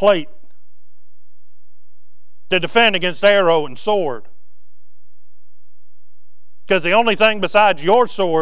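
A man preaches through a microphone in a large room, speaking with emphasis and pausing between phrases.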